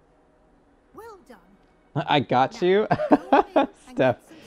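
An older woman speaks calmly and warmly.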